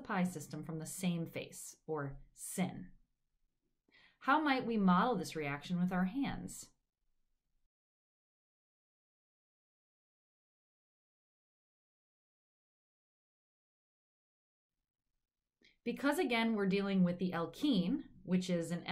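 A young woman speaks calmly and clearly into a microphone, with pauses.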